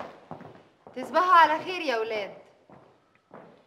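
A woman speaks at close range.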